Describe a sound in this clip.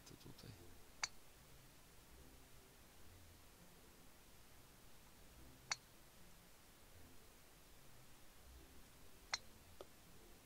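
A golf club taps a ball with a sharp click.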